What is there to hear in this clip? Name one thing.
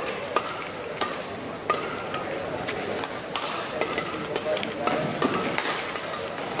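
Rackets strike a shuttlecock in sharp smacks.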